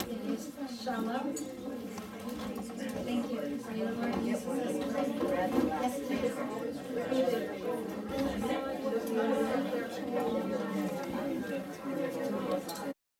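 A woman speaks aloud to a group.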